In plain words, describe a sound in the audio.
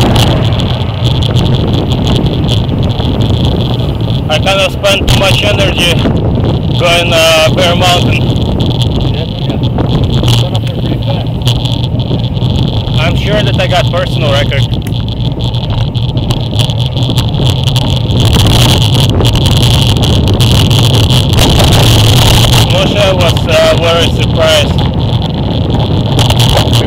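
Wind rushes loudly past as a bicycle speeds downhill outdoors.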